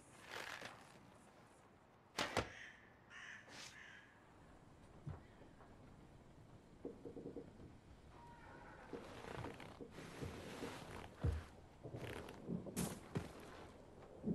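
Footsteps thud on creaky wooden floorboards.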